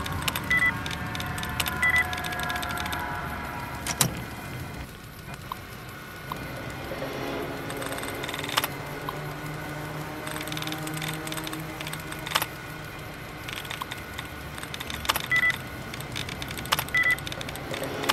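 A terminal beeps in short high tones.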